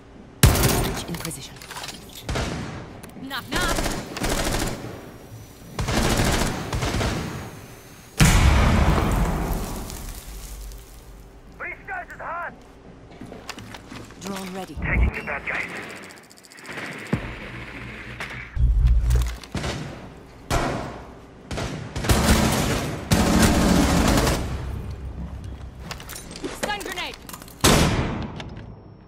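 Gunshots crack loudly in a video game.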